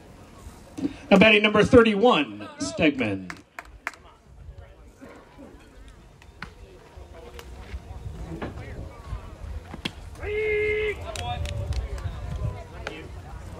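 Young men shout and call out loudly across an open field.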